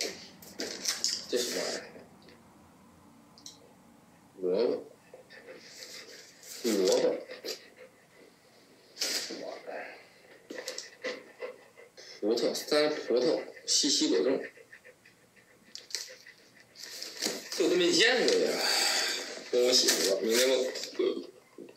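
Cardboard boxes scrape and rustle in hands.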